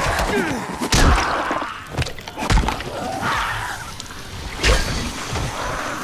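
Heavy blows strike bodies with wet thuds.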